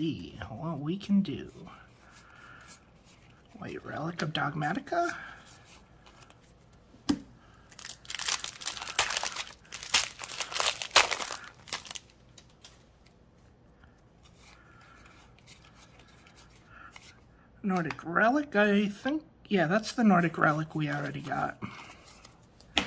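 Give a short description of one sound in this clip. Stiff cards slide and flick against each other.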